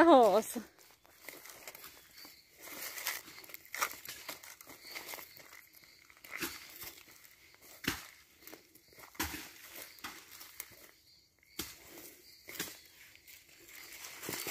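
Footsteps crunch on dry grass and twigs.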